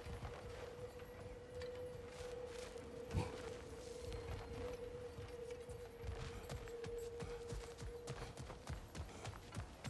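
Heavy footsteps thud on stone and wooden planks.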